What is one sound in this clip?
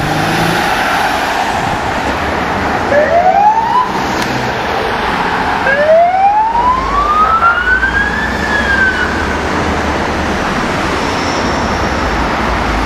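Car engines and tyres hum past on a busy road.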